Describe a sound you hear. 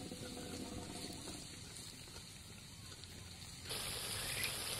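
Onions sizzle in hot oil in a pan.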